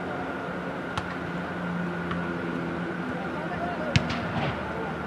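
A ball is kicked with a sharp thud.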